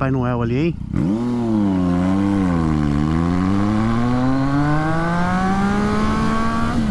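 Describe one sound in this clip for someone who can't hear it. A motorcycle accelerates, its engine pitch climbing steadily.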